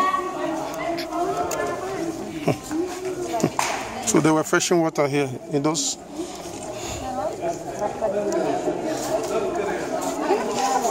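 Several people chatter in the background outdoors.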